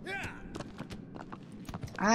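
A horse's hooves clatter on stone as it gallops.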